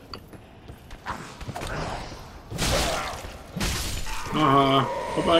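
Heavy thuds and crashes sound out.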